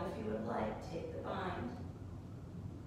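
A woman speaks calmly and close by, then falls quiet.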